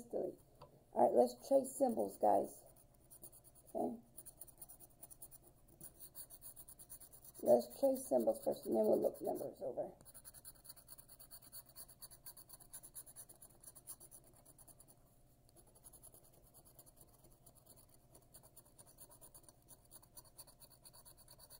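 A coin scratches briskly across a card in quick, rasping strokes.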